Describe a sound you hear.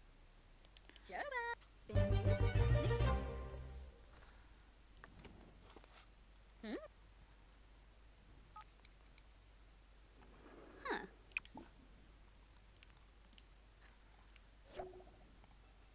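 A young woman speaks briefly into a headset microphone.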